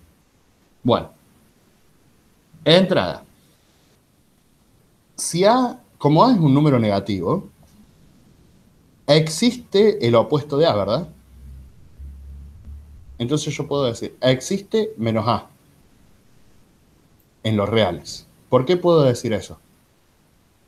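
A man speaks calmly through an online call, explaining step by step.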